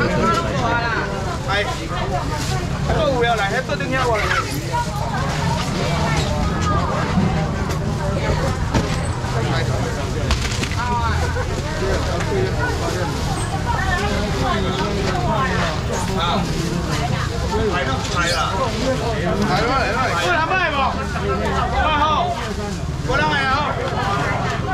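A crowd of people chatters all around in a busy, noisy space.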